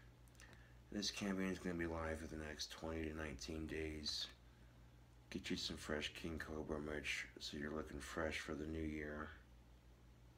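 A man speaks close to the microphone in a low, calm voice.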